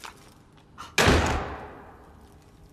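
A door slams shut.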